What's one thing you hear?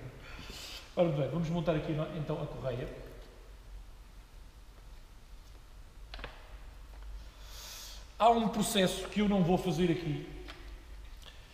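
A man talks close by, calmly explaining.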